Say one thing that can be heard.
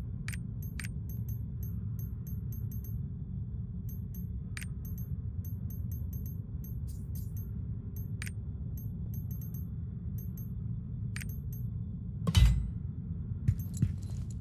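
Soft interface clicks and ticks sound repeatedly as menus change.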